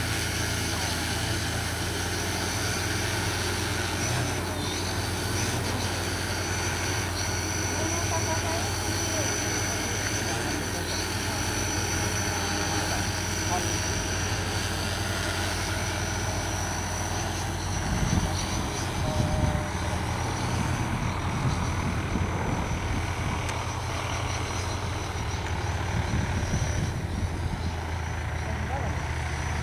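A large multirotor drone hums and whirs steadily overhead as it hovers and drifts away.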